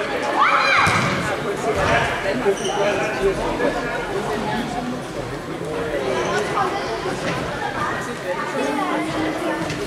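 Children shout and call out across an echoing hall.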